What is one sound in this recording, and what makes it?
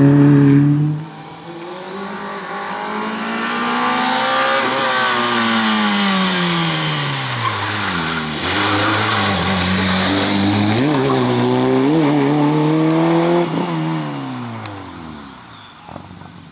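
A rally car engine roars loudly as the car races past close by.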